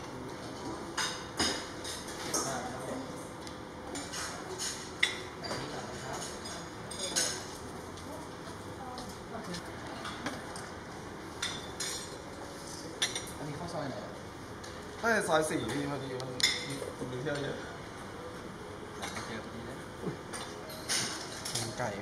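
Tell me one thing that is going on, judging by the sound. Serving spoons clink against ceramic bowls.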